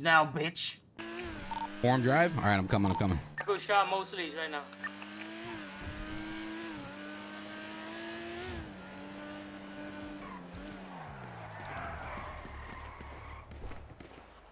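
A car engine revs and hums as the car speeds along.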